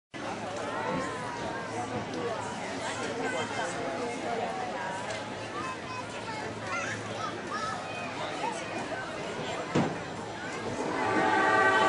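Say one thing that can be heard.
A crowd chatters nearby.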